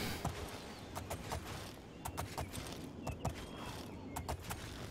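A horse's hooves clop steadily on stone.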